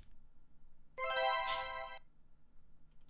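A game plays a bright ringing chime.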